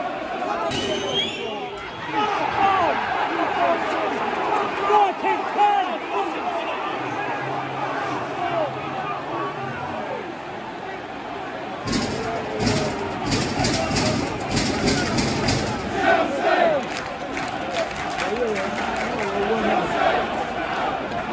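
A large stadium crowd cheers and chants loudly all around.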